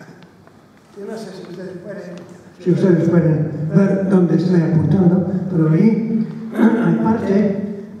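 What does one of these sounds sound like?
An elderly man speaks through a microphone in a large echoing hall.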